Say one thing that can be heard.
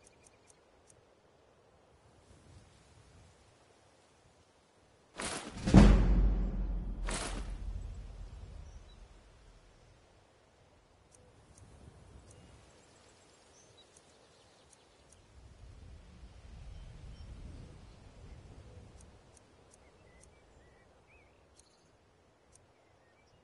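Soft clicks tick as a game menu scrolls.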